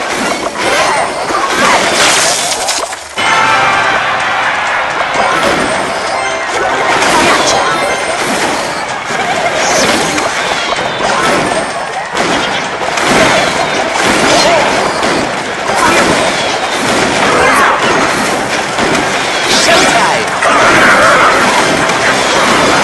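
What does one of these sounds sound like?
Cartoon battle effects crackle and burst as small spells explode.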